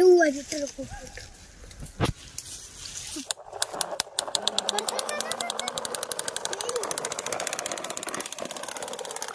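A small plastic toy truck rolls over dry leaves and dirt.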